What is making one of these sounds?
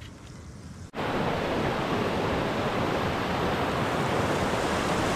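A river rushes loudly over rocks.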